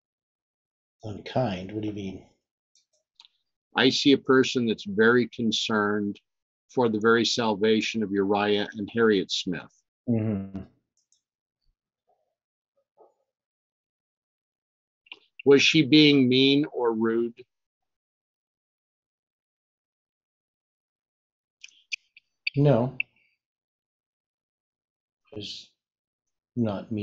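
An elderly man reads aloud slowly and calmly, close to a microphone, with long pauses.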